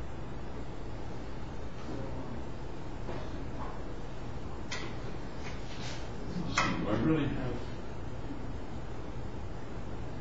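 An elderly man lectures calmly in a large, echoing room.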